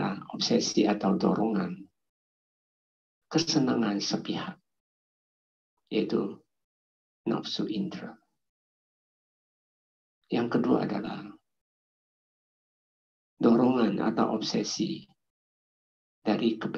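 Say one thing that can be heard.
An elderly man speaks calmly into a microphone, in phrases with long pauses, heard through an online call.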